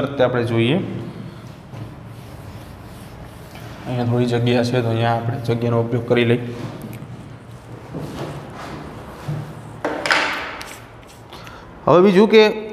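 A man speaks in a lecturing tone, close by.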